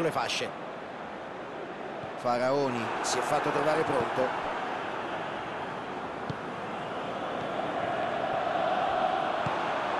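A stadium crowd roars.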